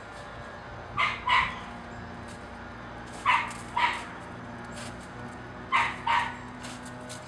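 Young girls shout out loudly outdoors.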